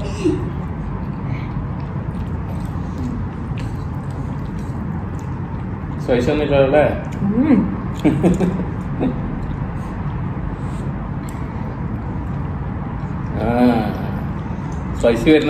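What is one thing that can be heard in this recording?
A woman slurps noodles.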